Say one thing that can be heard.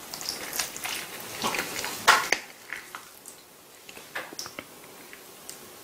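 A fork and knife scrape and clink on a plate.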